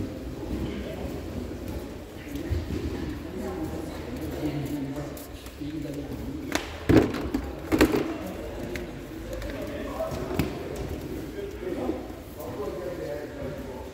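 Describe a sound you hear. Men and women talk quietly in a large echoing hall.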